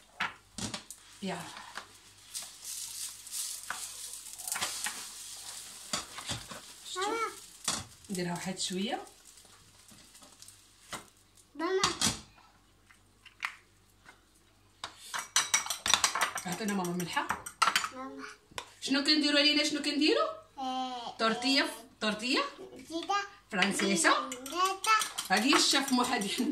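A fork whisks beaten eggs, clinking against the sides of a bowl.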